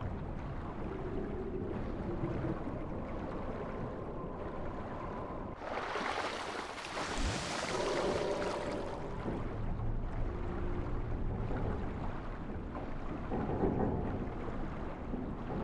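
Wind rushes past a falling man.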